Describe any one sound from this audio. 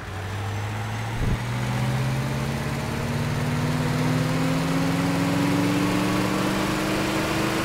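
A bus engine hums and slowly rises in pitch as it speeds up.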